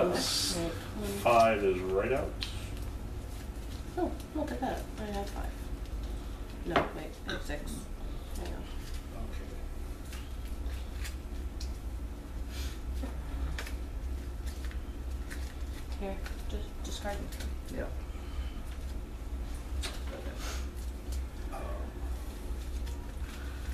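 Playing cards rustle and flick in someone's hands.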